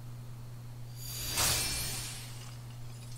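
A sword swishes through the air with a ringing shimmer.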